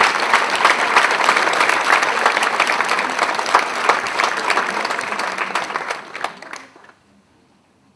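An audience claps loudly in a large hall, then the applause dies away.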